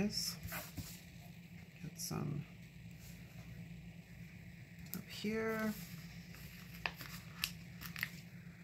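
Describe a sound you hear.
Tweezers tap and click against paper.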